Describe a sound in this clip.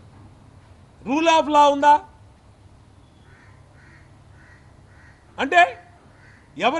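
A middle-aged man speaks forcefully into a microphone in short bursts.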